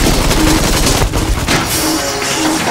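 A plane explodes with a loud boom.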